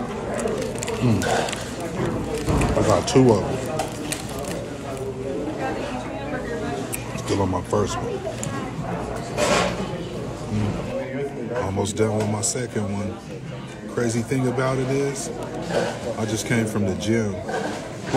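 A man talks casually and close to a microphone.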